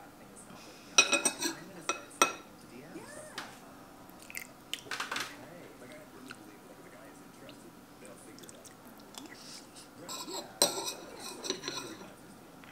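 A spoon clinks against a ceramic plate.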